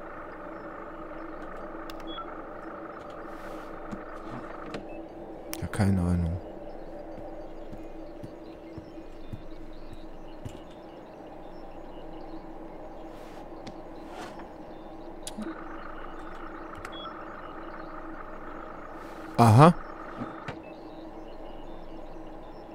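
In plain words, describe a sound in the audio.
Server fans hum steadily.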